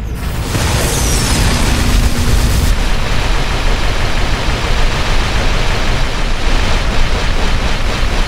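Loud explosions boom and roar close by.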